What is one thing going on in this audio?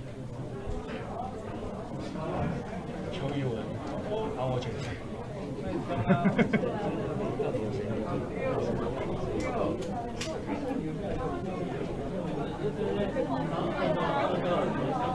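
A crowd of men and women murmurs and talks over one another in a room.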